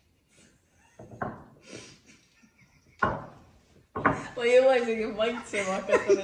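Two young women laugh loudly together close by.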